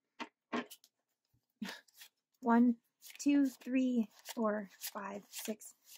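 Paper bills rustle and flick as they are handled.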